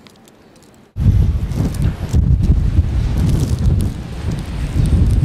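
A train rumbles as it approaches through snow.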